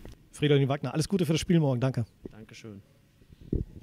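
A young man speaks calmly into a microphone close by.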